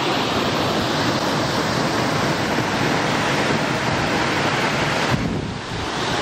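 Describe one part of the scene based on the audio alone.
Water rushes steadily over a weir.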